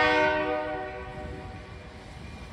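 A train horn blows loudly and quickly fades.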